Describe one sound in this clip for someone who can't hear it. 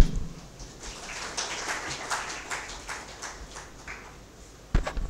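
A man speaks faintly through a microphone.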